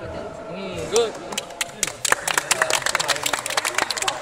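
Young men clap their hands quickly.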